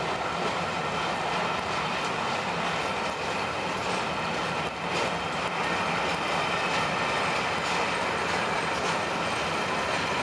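Train carriages rumble and clatter steadily along the rails.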